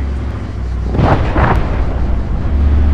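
A distant explosion thuds.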